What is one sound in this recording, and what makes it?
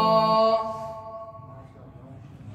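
A young man sings a drawn-out note into a microphone.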